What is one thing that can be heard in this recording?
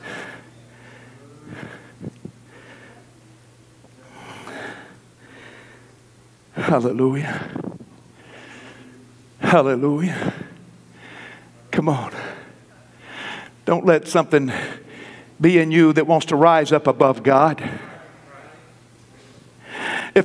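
A man preaches through a microphone in an echoing hall, his voice rising to loud, emphatic shouts.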